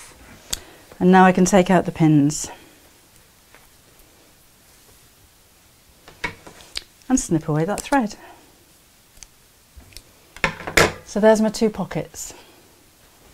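A middle-aged woman speaks calmly and clearly, close by.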